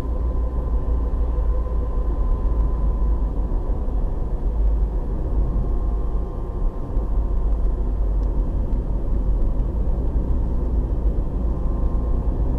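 A car's engine and tyres rumble on asphalt, heard from inside the car.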